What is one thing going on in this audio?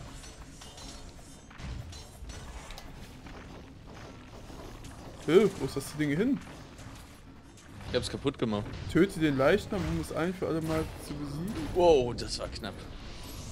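Magic blasts crackle and whoosh in a fast fight.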